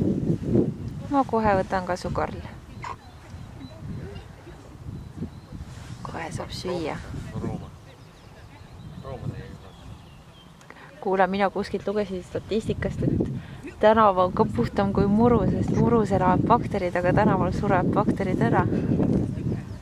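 A woman speaks calmly outdoors, with short pauses.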